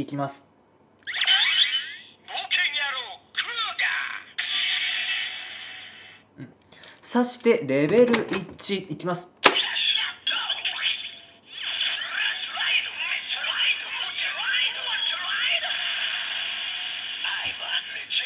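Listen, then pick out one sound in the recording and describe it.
A toy belt plays a loud electronic voice and music through a small speaker.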